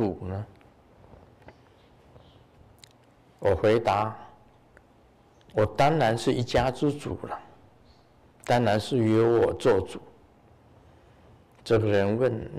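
An elderly man speaks calmly into a microphone in short phrases.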